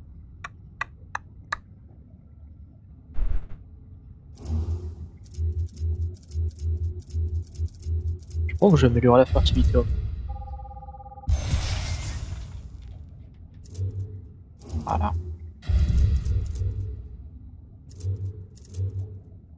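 Short menu clicks sound as selections change.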